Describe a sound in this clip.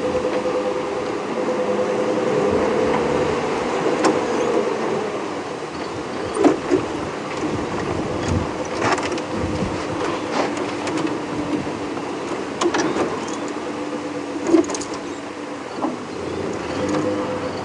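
Tyres roll and bump over a dirt track.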